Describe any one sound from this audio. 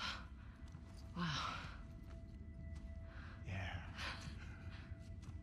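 A young man speaks in an awed voice.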